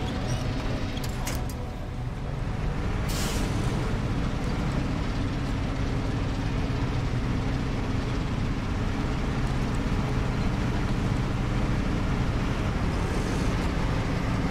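A heavy truck engine rumbles steadily as it climbs.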